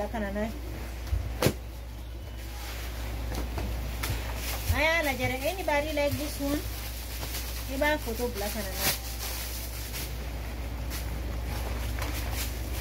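Stiff shiny fabric rustles and crinkles.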